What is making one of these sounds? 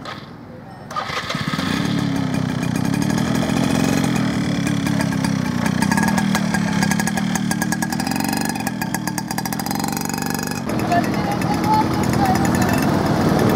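A small motorbike engine putters and hums steadily.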